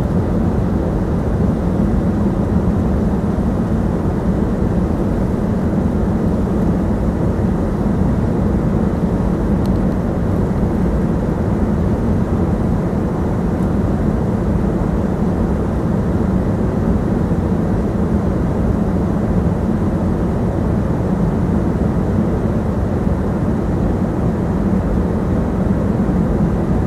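A jet engine roars steadily with a deep rumbling drone in the cabin.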